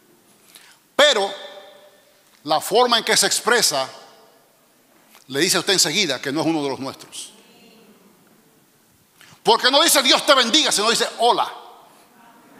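A man speaks with animation into a microphone, in bursts with pauses, in a large echoing hall.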